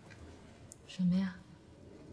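A woman asks a short question, close by.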